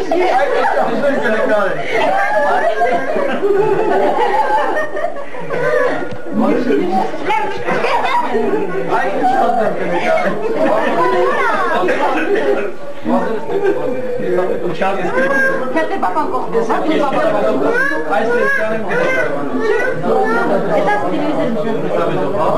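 Many men talk over one another loudly, close by.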